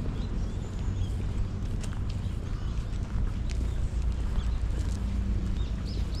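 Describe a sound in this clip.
Footsteps scuff on pavement nearby.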